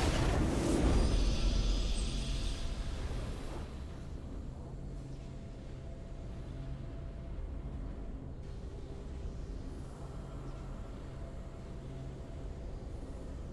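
A triumphant fanfare plays and then settles into a soft, steady tune.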